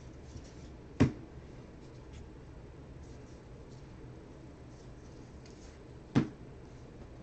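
A stack of cards taps on a table.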